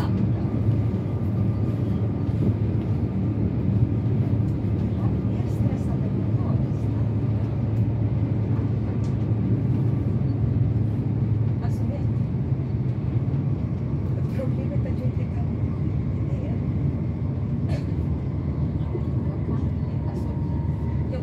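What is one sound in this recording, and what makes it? Train wheels click and clatter over rail joints.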